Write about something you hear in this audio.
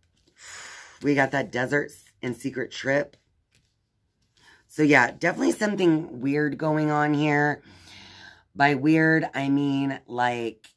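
A woman speaks with animation, close to the microphone.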